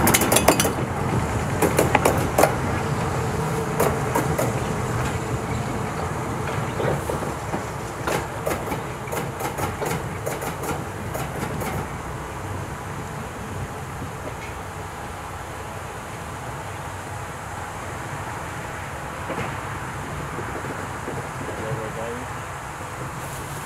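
A locomotive's engine hums as it rolls slowly away into the distance.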